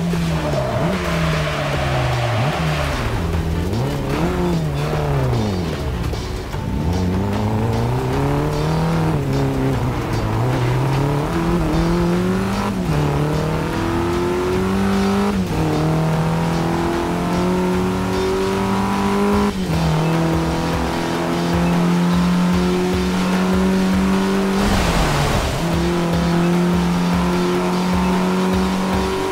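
A car engine revs up and down, climbing through the gears.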